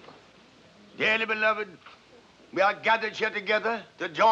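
An elderly man speaks clearly and formally.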